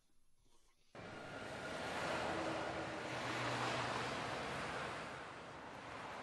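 Traffic rolls past steadily on a busy road outdoors.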